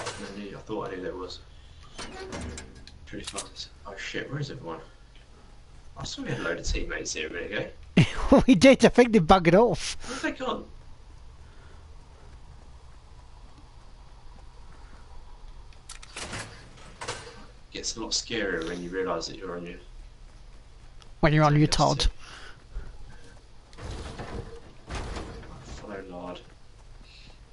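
A man talks casually into a close microphone, pausing now and then.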